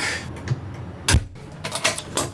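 A door latch clicks and the door thuds shut.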